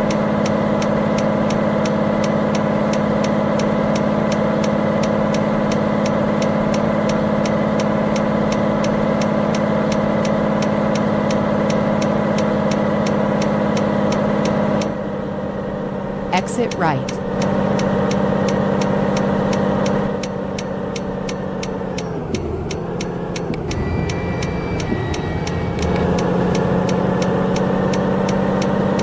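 A turn signal ticks rapidly.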